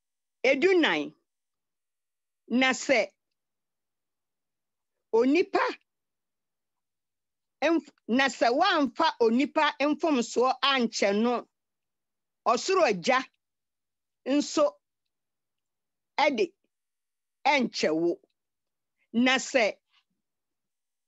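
An elderly woman speaks slowly in short bursts with pauses, heard through an online call.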